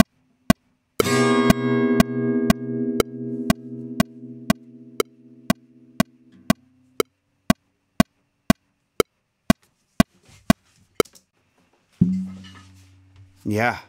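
An acoustic guitar chord is strummed and rings out slowly.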